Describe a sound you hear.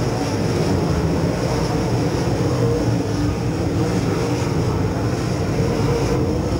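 A race car engine idles with a loud, steady rumble close by.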